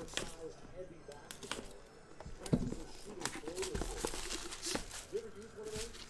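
Plastic wrap crinkles as it is peeled off.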